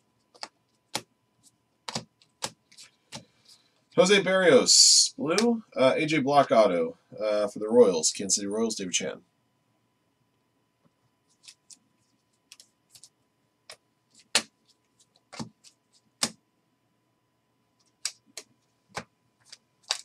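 Trading cards click and tap as they are shuffled.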